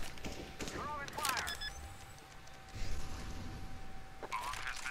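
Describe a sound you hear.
A bomb's keypad beeps as it is armed.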